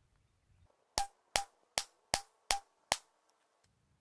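Several gunshots crack outdoors in quick succession.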